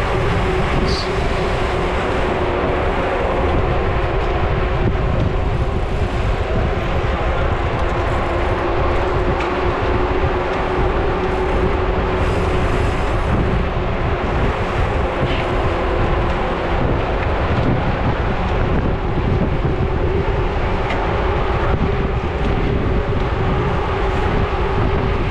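Bicycle tyres hum and crunch on a rough road.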